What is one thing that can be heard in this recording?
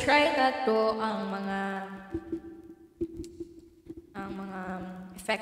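A young woman sings close into a microphone, holding long notes.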